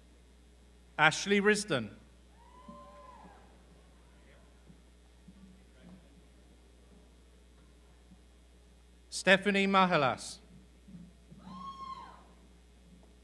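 A crowd cheers and whoops loudly in a large hall.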